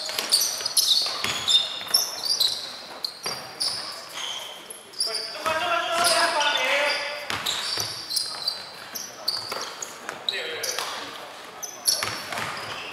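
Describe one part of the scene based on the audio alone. Sneakers squeak sharply on a hardwood court in a large echoing hall.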